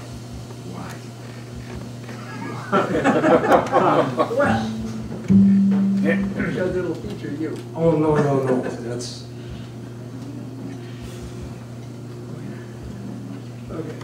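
An upright bass is plucked.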